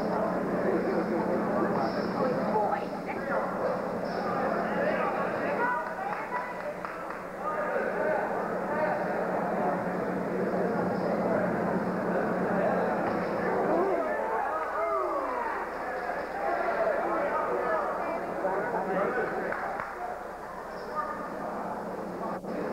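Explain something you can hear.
A crowd murmurs and shouts in a large hall.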